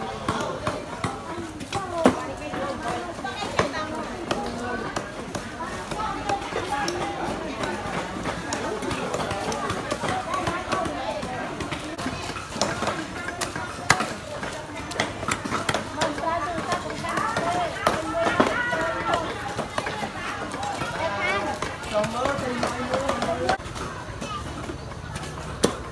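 Many men and women chatter all around in a busy crowd.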